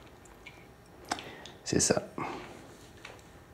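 A man sips a drink from a glass.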